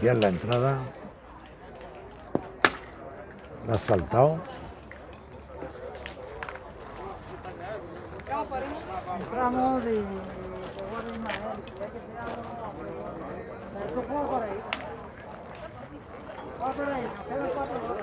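Young men talk casually outdoors, close by.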